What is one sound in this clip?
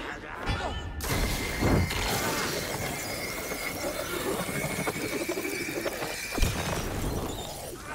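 Sparks and flames roar and crackle loudly.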